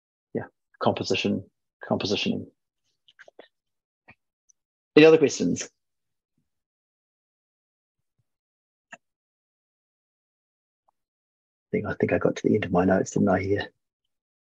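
A man speaks calmly in short bursts, heard through an online call.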